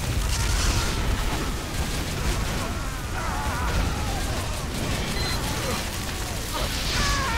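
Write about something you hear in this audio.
A game weapon fires with a steady, crackling roar.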